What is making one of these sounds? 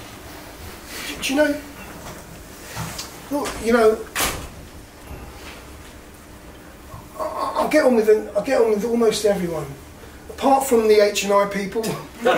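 An elderly man speaks close up with animation, in short bursts and pauses.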